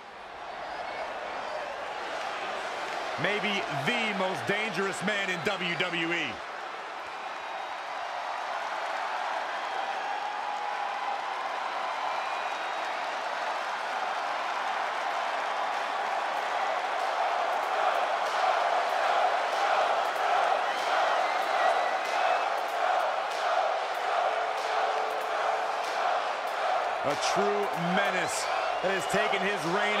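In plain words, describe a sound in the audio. A large crowd cheers and roars steadily in a big echoing arena, growing louder midway.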